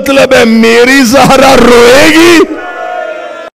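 A man chants loudly and passionately into a microphone.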